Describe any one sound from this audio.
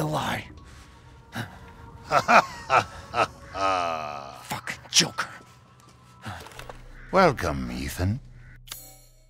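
A man speaks in a deep, mocking voice, up close.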